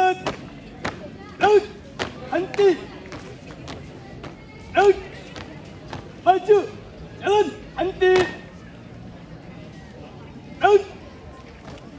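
Marching feet stomp in unison on a hard court.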